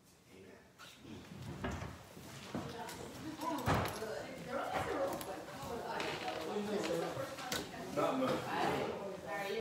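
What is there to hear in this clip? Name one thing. Several people murmur and talk at once.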